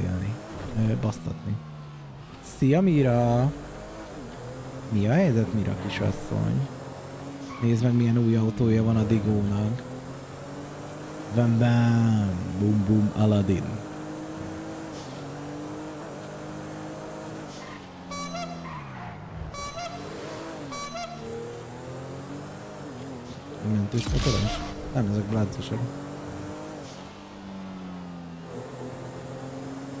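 A car engine revs and roars as it speeds up and slows down.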